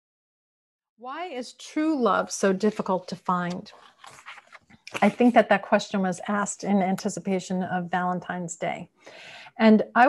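A woman speaks calmly and warmly, heard through a microphone on an online call.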